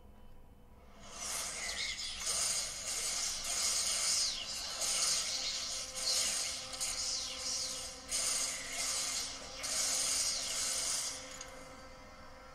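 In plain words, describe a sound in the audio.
Loud whooshing and crashing fight noises rush past.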